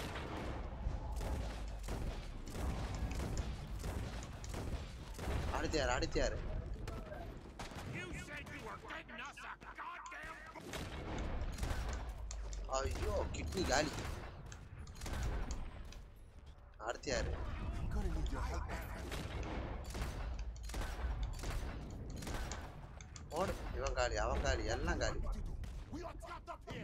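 Rifle shots crack repeatedly.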